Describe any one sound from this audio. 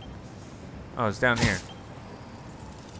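A web line shoots out with a sharp whoosh.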